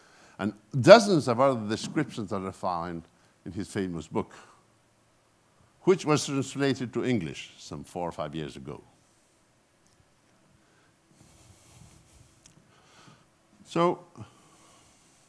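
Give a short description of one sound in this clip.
An elderly man speaks calmly into a microphone, heard over a loudspeaker in a hall.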